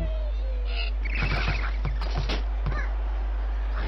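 A cartoon bird squawks as it is flung through the air.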